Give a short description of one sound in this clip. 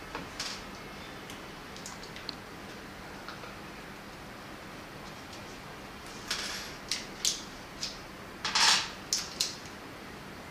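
Hard plastic parts click and rattle as hands fit them together.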